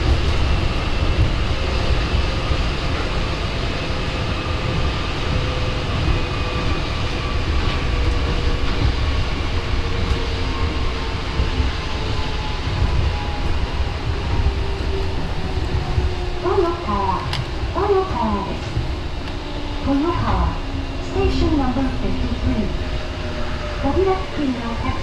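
A train's electric motor whines and slowly falls in pitch as the train slows.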